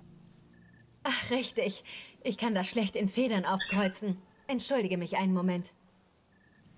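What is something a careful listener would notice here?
A young woman speaks lightly and with animation.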